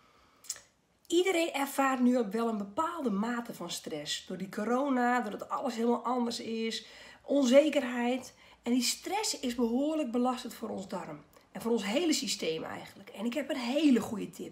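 A middle-aged woman talks with animation close to a microphone.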